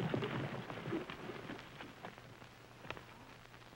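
Horses' hooves clatter on dirt and fade.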